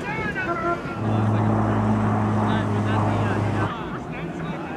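A small propeller plane flies past with a loud, steady engine drone.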